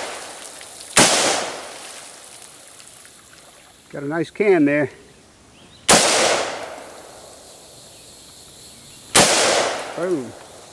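Loud gunshots bang sharply and echo briefly outdoors.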